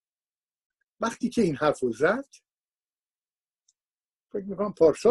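An elderly man speaks calmly into a microphone over an online call, pausing between phrases.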